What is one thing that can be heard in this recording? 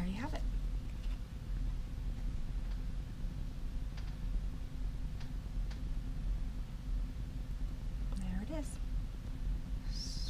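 A stiff paper card rustles softly as it is handled.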